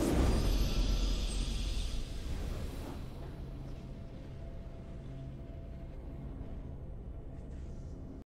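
A triumphant victory fanfare plays.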